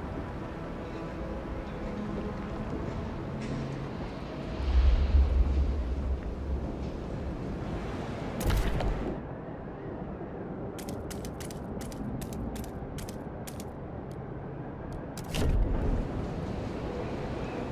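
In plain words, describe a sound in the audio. Cold wind blows steadily.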